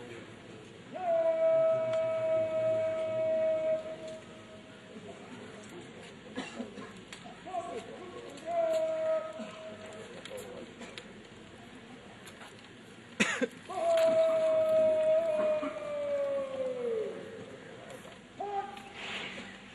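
A man shouts long drawn-out parade commands across an open outdoor ground.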